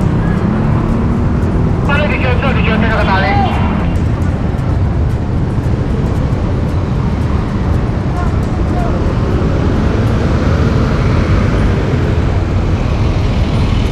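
Traffic rumbles steadily along a busy street outdoors.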